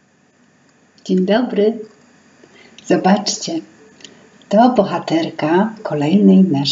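A woman speaks warmly and expressively close to a microphone.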